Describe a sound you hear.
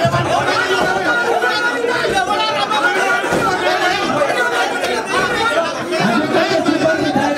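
A crowd of men talks and chatters loudly close by.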